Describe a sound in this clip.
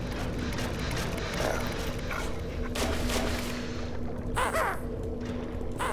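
Water splashes softly now and then.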